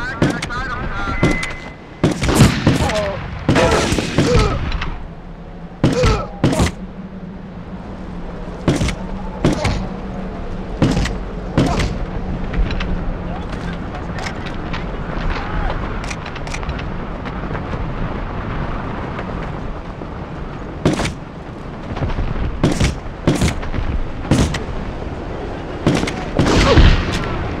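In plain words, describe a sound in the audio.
A pistol fires sharp single shots.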